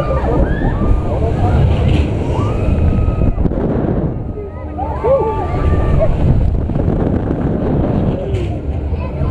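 Young riders scream and shriek with excitement close by.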